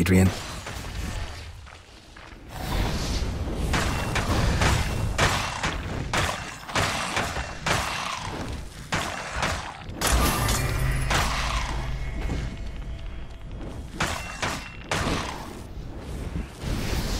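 Weapons strike skeletons with sharp hits.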